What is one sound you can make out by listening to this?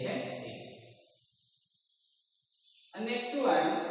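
A duster rubs across a blackboard.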